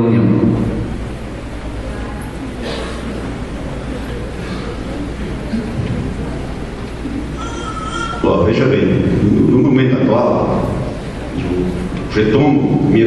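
A man speaks into a microphone with animation, heard through loudspeakers in an echoing hall.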